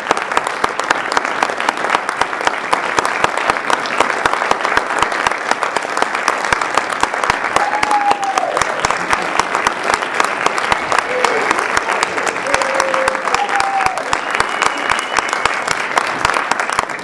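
Hands clap in a quick, steady rhythm.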